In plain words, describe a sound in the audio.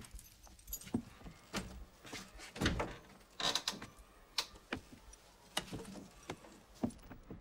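An elderly man rattles a door handle and lock.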